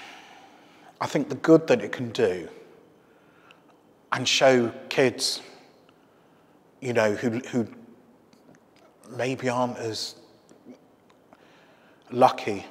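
A middle-aged man speaks calmly and up close in short phrases with pauses.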